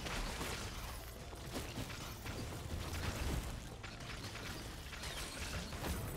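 Video game sound effects clash and zap in quick succession.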